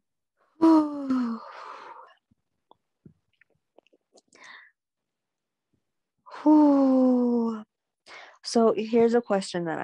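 A young woman speaks softly and drawn-out, close to the microphone.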